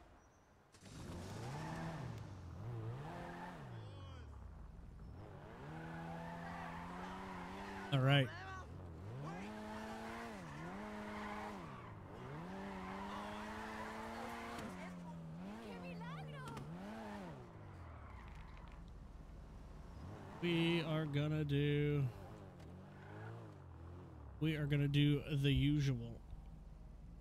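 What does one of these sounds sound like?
A car engine revs up and drops through the gears.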